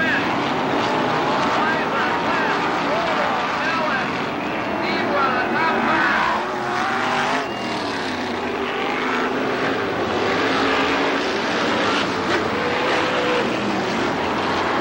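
Race car engines roar and whine, rising and falling in pitch.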